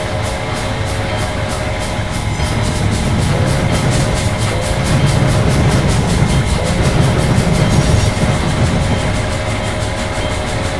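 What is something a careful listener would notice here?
A train engine rumbles steadily while moving.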